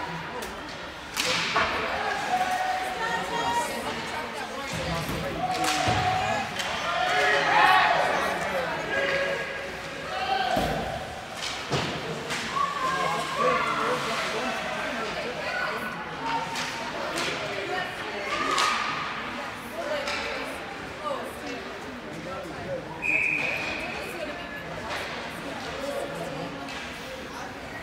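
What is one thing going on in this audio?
A crowd of spectators chatters and calls out in a large echoing rink.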